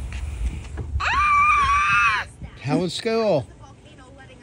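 A young boy squeals with laughter close by.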